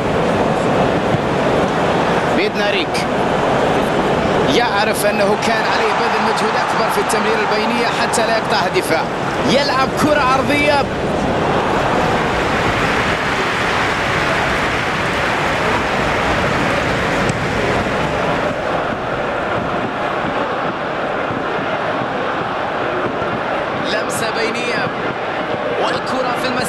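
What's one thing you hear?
A large crowd roars and cheers steadily in a big stadium.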